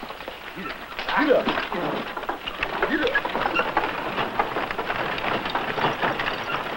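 A horse's hooves clop on a dirt street.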